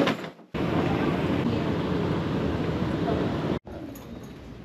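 A moving walkway rumbles steadily.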